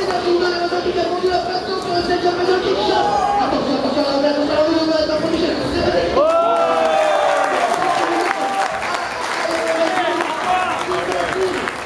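Lively video game music plays through loudspeakers.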